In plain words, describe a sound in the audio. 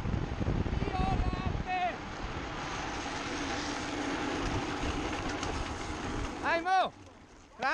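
Small wheels roar on asphalt.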